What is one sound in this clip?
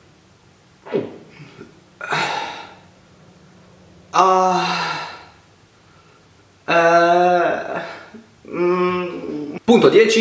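A young man groans and whines in disgust.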